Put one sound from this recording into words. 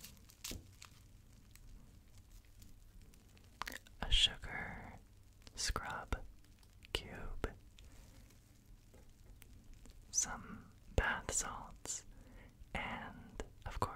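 Crinkly packaging taps and crackles close to a microphone.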